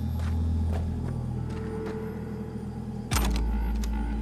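Metal cabinet doors swing open with a clank.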